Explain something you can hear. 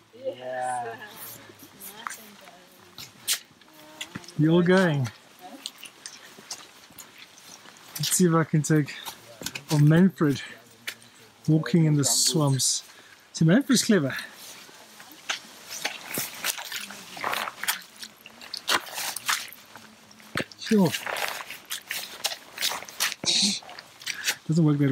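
Boots squelch and tread through wet mud.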